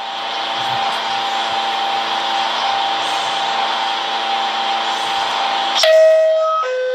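A subway train's motors hum steadily while it stands still.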